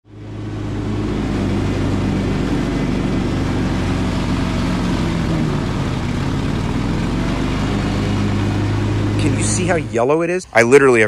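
A mower engine drones steadily up close.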